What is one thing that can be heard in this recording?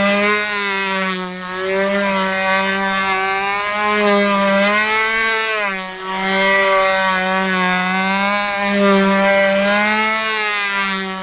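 A control-line model plane's glow engine screams as the plane circles, its pitch rising and falling with each lap.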